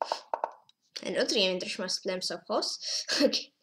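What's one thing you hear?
A young boy speaks quickly and with animation, close to a microphone.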